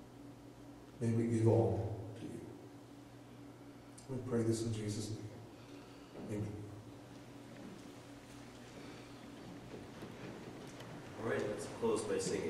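A man speaks through a microphone in a large echoing hall, pausing between phrases.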